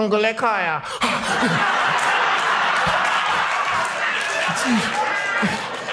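An audience laughs and cheers loudly in a large hall.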